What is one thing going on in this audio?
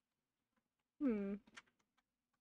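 A young woman makes a short, falling vocal sound close to a microphone.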